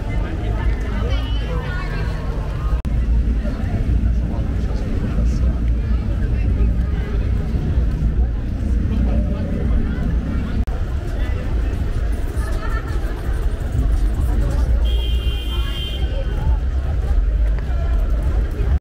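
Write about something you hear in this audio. Young women chatter nearby with animation.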